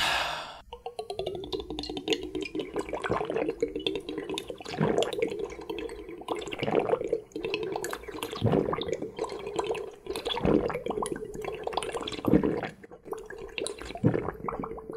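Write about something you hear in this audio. Liquid bubbles and gurgles as a man sucks it through a straw.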